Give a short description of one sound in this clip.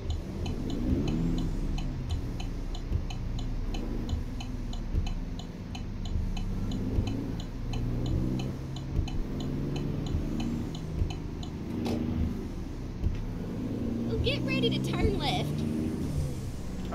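A heavy truck engine rumbles and drones steadily.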